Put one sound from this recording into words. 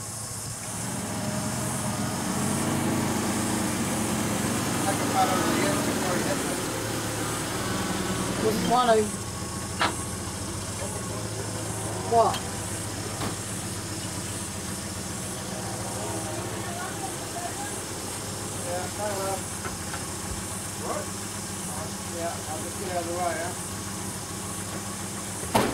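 Water trickles from a hose onto soil.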